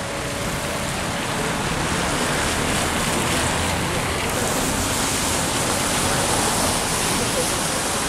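Cars drive past on a wet street nearby.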